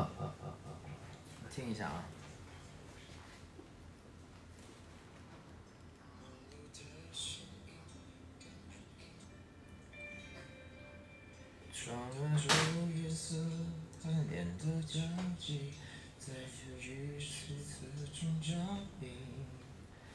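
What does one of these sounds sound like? A young man speaks casually into a microphone, close by.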